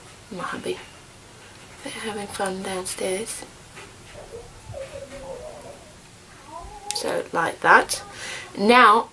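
A woman talks calmly close to the microphone.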